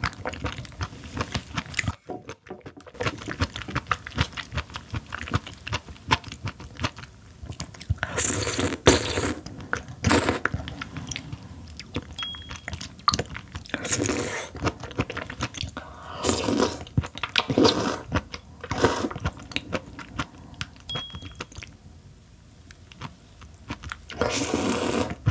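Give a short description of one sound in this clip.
A young woman chews with soft, wet smacking sounds, close to a microphone.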